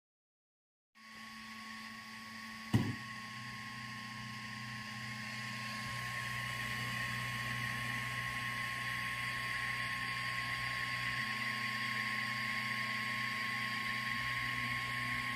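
A small engraving machine hums and whirs steadily.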